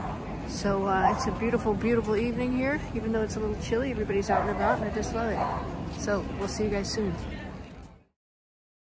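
A crowd of people chatter in a busy outdoor street.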